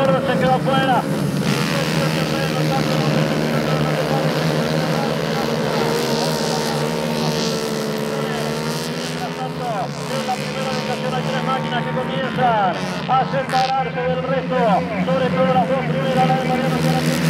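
Several two-stroke racing kart engines scream at full throttle, rising and falling in pitch as the karts pass.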